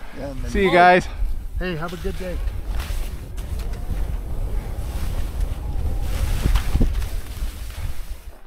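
Skis slide and hiss over snow.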